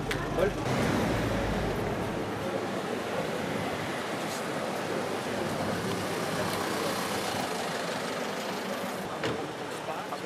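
Street traffic and crowd chatter murmur in the background outdoors.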